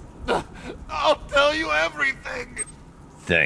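A man cries out in fear.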